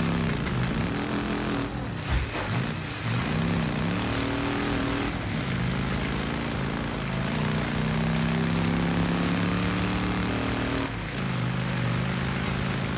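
A motorcycle engine revs up and down as the bike rides along.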